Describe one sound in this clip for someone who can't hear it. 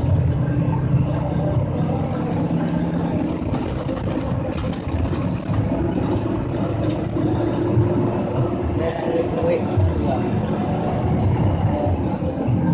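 A bus engine rumbles steadily while driving.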